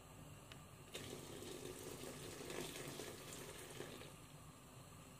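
A thick liquid pours into a pot.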